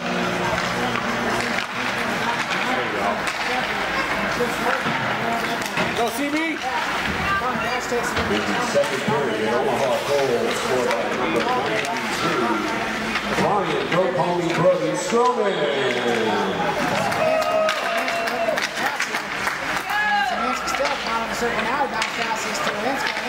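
Spectators talk and call out nearby in a large echoing rink.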